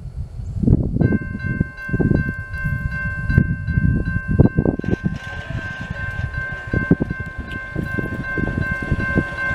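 A train horn blows loudly and steadily.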